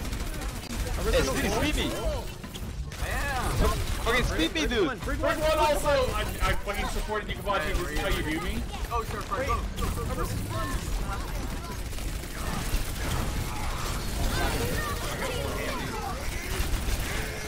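Video game pistols fire in rapid bursts.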